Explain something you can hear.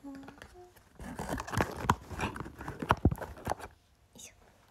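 Fabric of a fluffy sweater rustles against a microphone.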